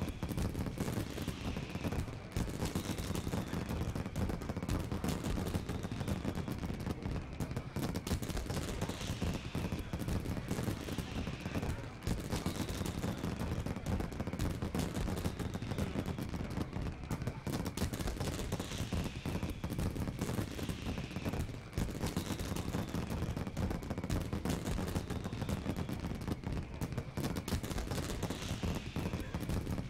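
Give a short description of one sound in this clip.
Triumphant game music plays in a steady loop.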